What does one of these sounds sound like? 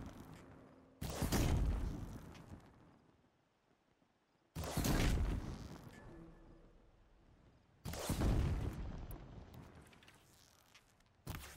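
A bow looses arrows that burst with a loud whooshing blast, fading away each time.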